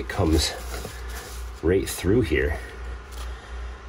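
A hand scrapes and scoops loose dirt out of a hole.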